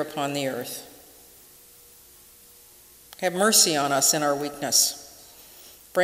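A middle-aged woman reads aloud calmly into a microphone, with pauses.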